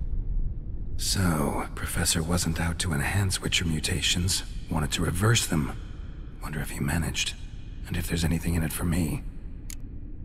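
A man speaks calmly in a low, gravelly voice, close and clear.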